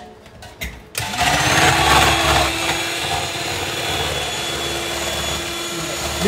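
An electric hand mixer whirs steadily, whisking in a metal cup.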